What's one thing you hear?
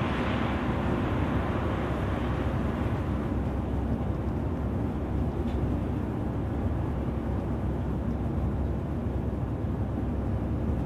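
A bus engine hums steadily as the bus drives along a highway.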